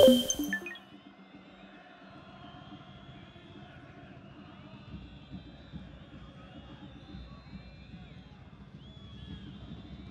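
A crowd murmurs faintly in a stadium.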